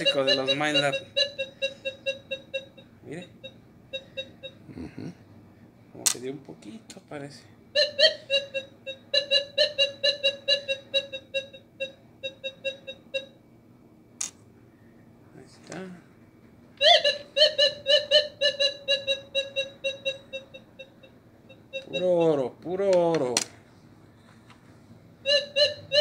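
A metal detector beeps in quick, rapid pulses as a coin passes near it.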